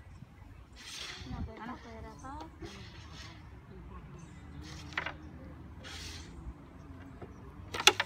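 Carrom pieces click and slide on a wooden board.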